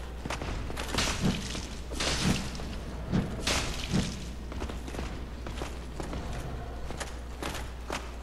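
Heavy footsteps clatter on a stone floor.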